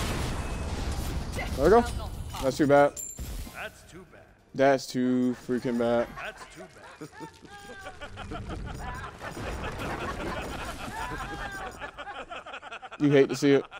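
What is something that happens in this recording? Game combat effects whoosh and clash.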